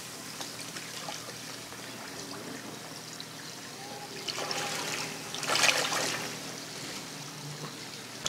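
Water splashes as a person swims.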